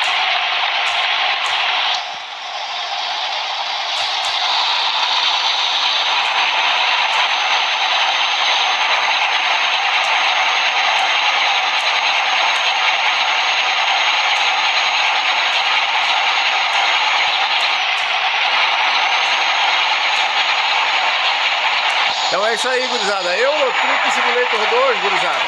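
A truck engine drones steadily as it drives along a road.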